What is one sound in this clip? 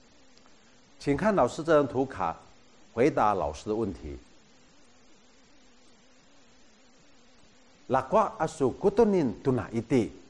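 A middle-aged man speaks calmly and clearly, close to a microphone, in short phrases with pauses.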